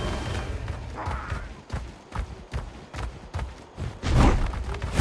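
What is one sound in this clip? A creature's footsteps thud quickly over grass.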